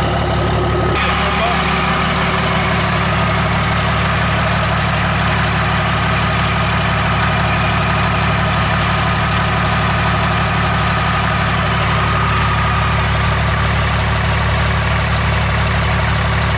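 A turbo whines with a steady high tone.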